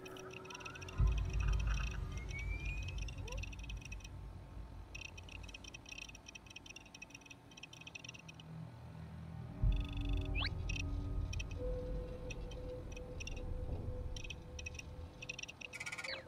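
A low electric hum rumbles from a device.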